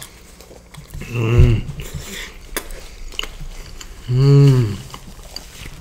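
A young man hums with pleasure close by.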